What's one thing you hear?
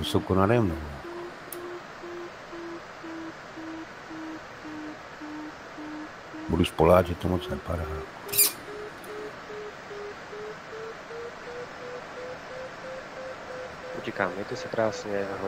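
A flight instrument beeps in quick pulses, its pitch slowly rising.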